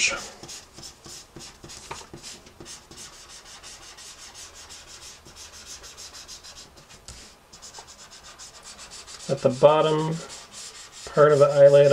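A felt-tip marker squeaks and scratches softly across paper.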